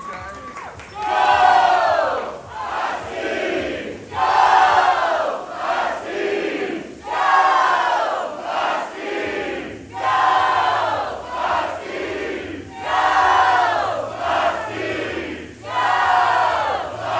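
A large crowd of young men and women chants and shouts in a steady rhythm.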